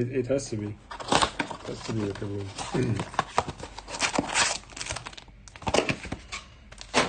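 A cardboard box rustles and scrapes as hands open it.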